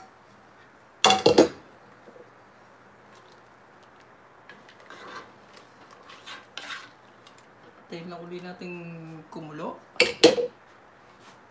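A wooden spoon stirs and knocks against a pot.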